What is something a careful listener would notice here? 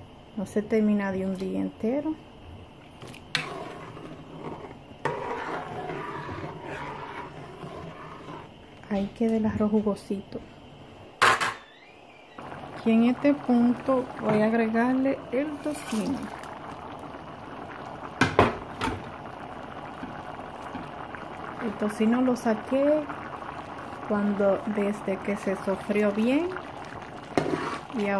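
Soup bubbles and simmers in a pot.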